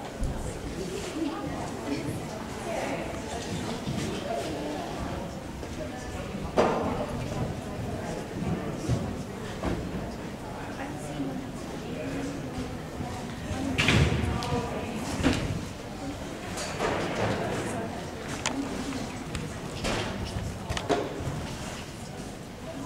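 Hooves thud on soft sand as a horse canters.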